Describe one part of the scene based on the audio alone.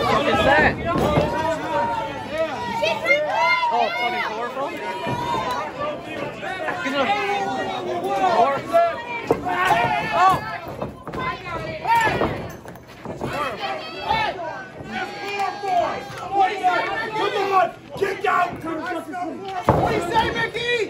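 Bodies slam hard against a ring mat.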